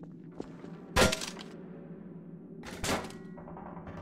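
A shotgun fires twice, close by.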